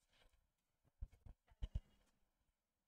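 A pen taps and knocks against a board.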